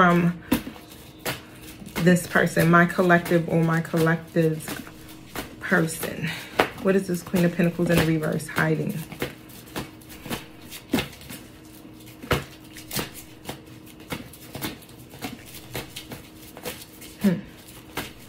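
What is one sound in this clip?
Cards shuffle and riffle in hands.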